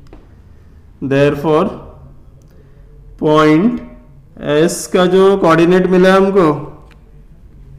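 A man speaks calmly and clearly, close by, in short phrases.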